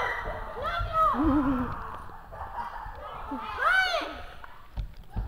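A young girl calls out in a high, sing-song voice.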